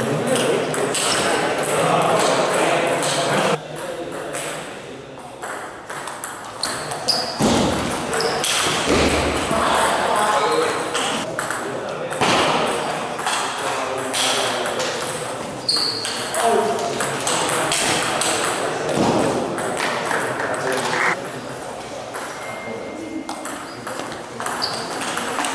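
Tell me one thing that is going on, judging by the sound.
A table tennis ball clicks back and forth between paddles and the table in an echoing hall.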